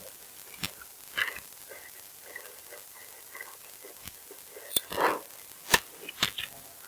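A pickaxe strikes wood with sharp knocks.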